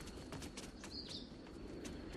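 A person tumbles down stone steps with scuffing thuds.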